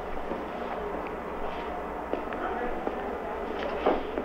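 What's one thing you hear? Footsteps walk across a hard floor.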